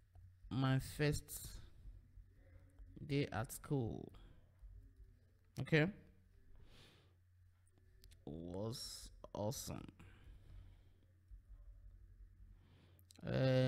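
A man speaks calmly and close into a microphone, in short phrases.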